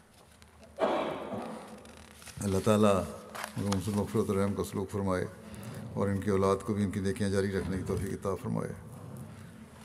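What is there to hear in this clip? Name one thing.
An elderly man speaks slowly and solemnly into a microphone, in a large echoing hall.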